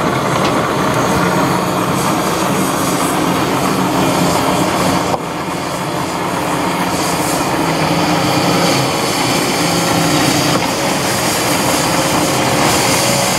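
A diesel excavator engine rumbles and whines steadily nearby.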